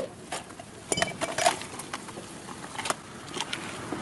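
Eggshell pieces clatter onto paving stones.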